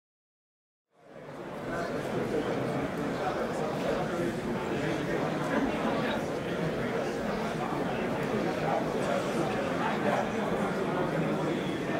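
A crowd of people chatter and murmur in a large echoing hall.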